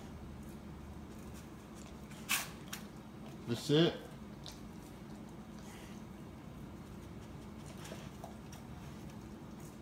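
A dog licks and nudges a crinkling plastic tray.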